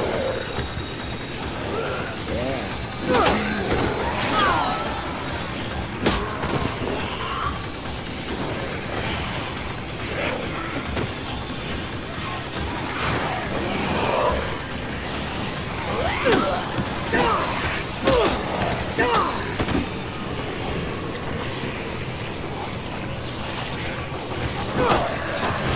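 Zombies groan and moan in a crowd.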